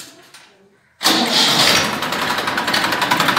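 A diesel tractor engine starts and runs with a loud, steady clatter.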